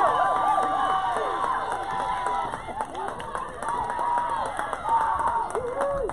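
Young women cheer and call out loudly outdoors.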